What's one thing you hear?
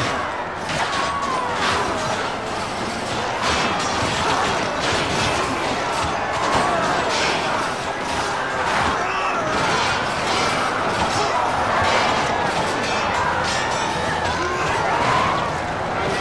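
A crowd of soldiers shouts and yells.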